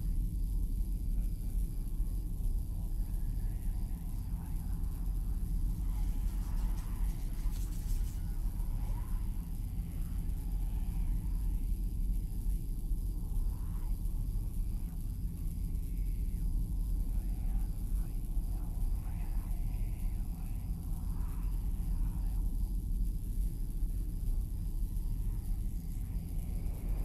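Wind rustles through trees outdoors.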